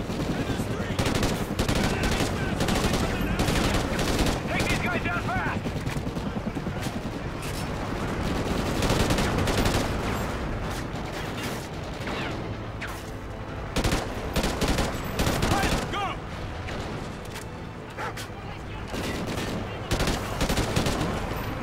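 An assault rifle fires.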